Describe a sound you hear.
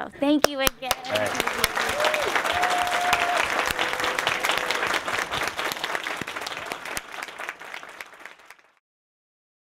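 A crowd applauds loudly, then the applause fades out.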